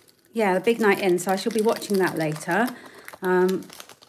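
Small beads rattle inside a plastic bag.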